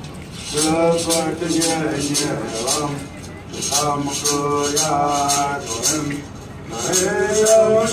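Music with a singing voice plays loudly through loudspeakers outdoors.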